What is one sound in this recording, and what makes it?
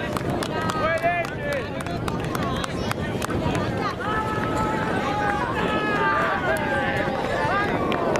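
Players slap hands as the teams shake hands.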